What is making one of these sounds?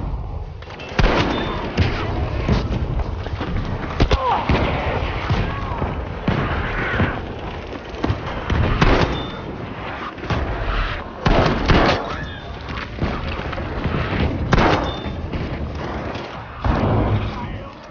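Shotgun blasts go off close by, one after another.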